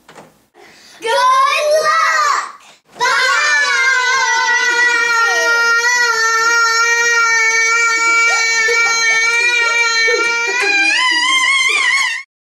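Young children sing out loudly together, holding one long note.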